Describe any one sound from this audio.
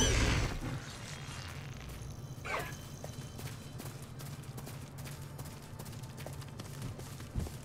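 A horse's hooves thud at a steady gallop.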